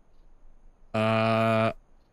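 An electronic keypad sounds a loud, harsh buzz.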